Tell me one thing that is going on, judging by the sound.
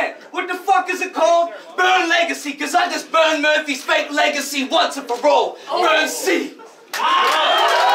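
A young man raps rapidly and forcefully.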